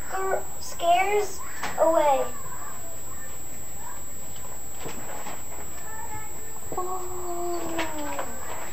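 A young boy reads aloud from a book.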